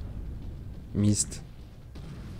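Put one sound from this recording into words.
An ammunition explosion booms.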